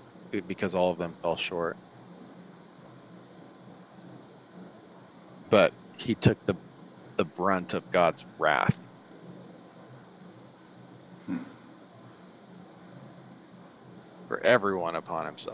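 A man talks calmly over an online call, in short bursts.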